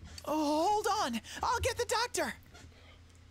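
A young man exclaims with animation into a close microphone.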